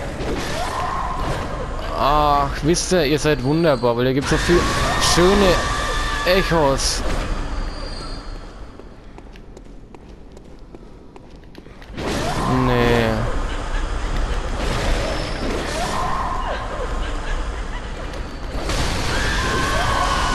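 A blade swishes and slashes repeatedly.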